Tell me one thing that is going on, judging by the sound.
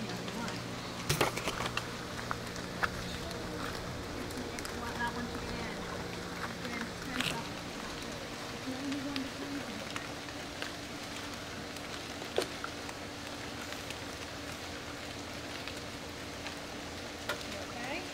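A woman speaks to a child nearby.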